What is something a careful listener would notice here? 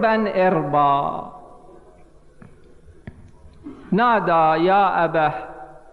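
A man speaks with feeling into a microphone, his voice rising and falling in a chanting tone.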